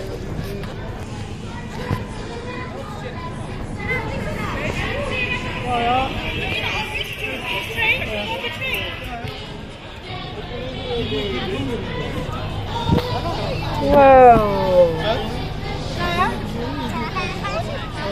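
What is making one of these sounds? A crowd of people chatters in the background outdoors.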